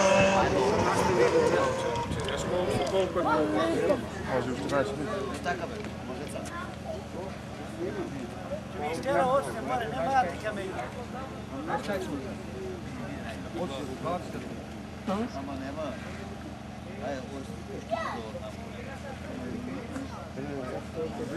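Men in a crowd talk nearby.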